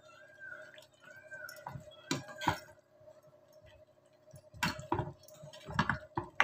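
A spoon stirs thick curry in a metal pan, scraping and clinking.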